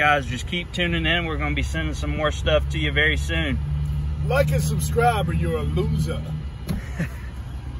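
A young man talks calmly and cheerfully, close by.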